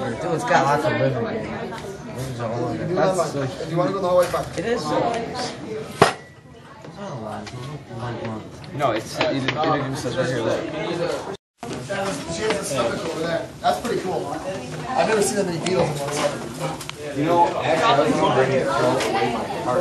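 Several young people talk and chatter nearby.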